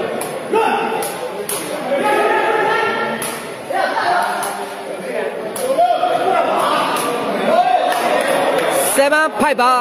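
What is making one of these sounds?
A rattan ball is kicked with sharp thuds.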